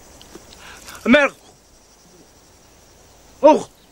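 A man cries out in anguish, close by.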